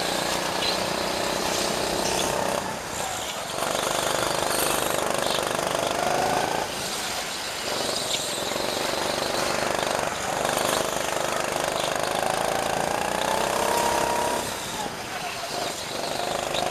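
A go-kart engine whines loudly, rising and falling in pitch as it speeds up and slows down.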